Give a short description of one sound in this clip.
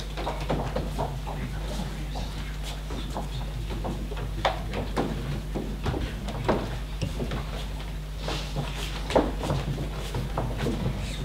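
Footsteps shuffle and thud on a wooden stage.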